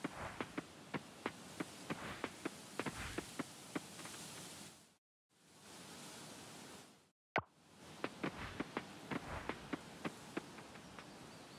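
Footsteps patter quickly on dirt.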